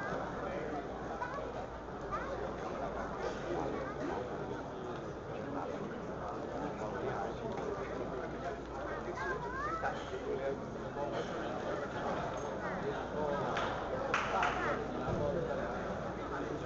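A crowd of spectators chatters throughout in an echoing hall.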